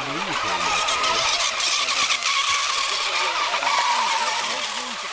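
A model boat's motor whines high and buzzy across the water.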